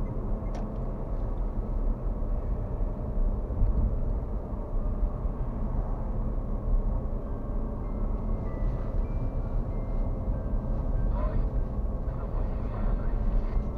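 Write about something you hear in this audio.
A car's engine hums steadily with road rumble from inside the cabin.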